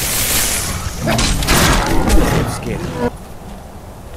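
A fiery blast crackles and roars loudly.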